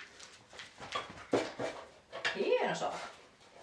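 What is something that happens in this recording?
A dog lands with a thump on a wooden crate.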